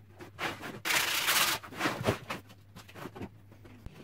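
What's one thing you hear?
Sandpaper rubs across wood.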